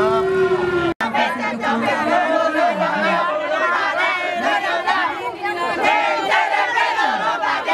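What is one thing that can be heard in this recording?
A group of young women and men cheer and laugh together nearby.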